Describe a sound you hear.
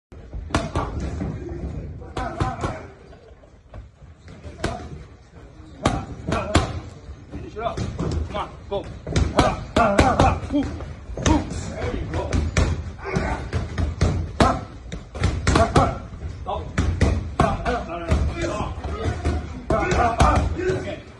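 Gloves smack sharply against punch mitts in quick bursts.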